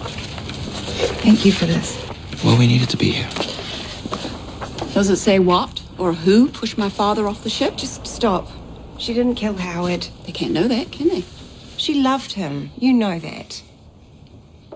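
An elderly woman reads out aloud calmly, close by.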